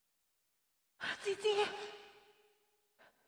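A woman sings in a high, wailing opera voice.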